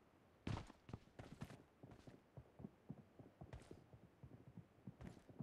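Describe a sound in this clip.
Footsteps thud softly on the ground.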